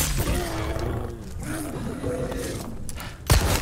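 A beast growls and snarls up close.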